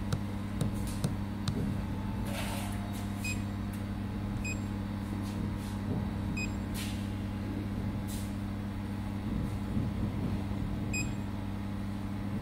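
A machine hums steadily and low.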